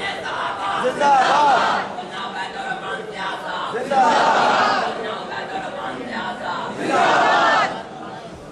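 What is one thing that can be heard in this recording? A crowd of men chants and calls out together.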